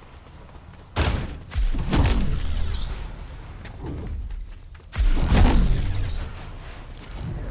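A loud whoosh rushes as a figure launches into the air.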